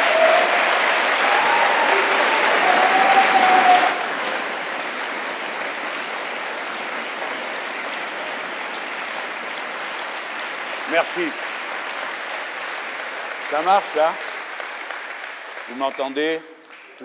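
A large crowd applauds loudly in an echoing hall, then the applause fades.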